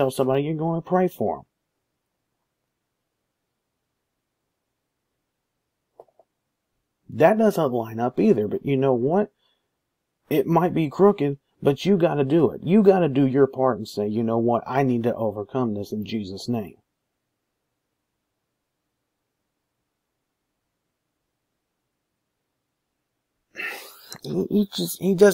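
A young man talks calmly and close to a microphone, with pauses.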